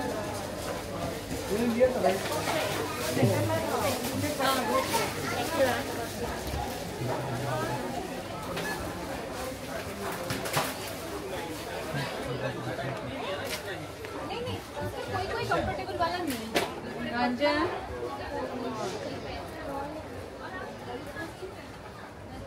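Many people chatter in the background of a busy indoor space.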